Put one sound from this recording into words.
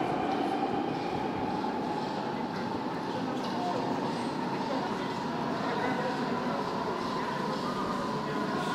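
A deep-tube underground train rumbles as it approaches through a tunnel.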